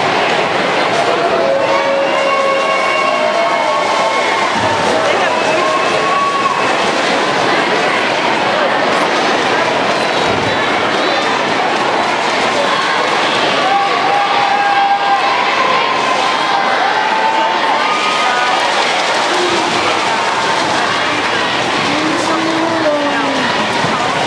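A large crowd chatters and cheers throughout an echoing arena.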